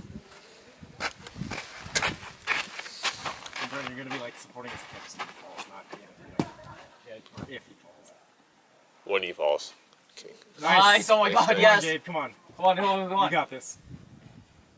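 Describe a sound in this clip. Young men talk and call out encouragement outdoors.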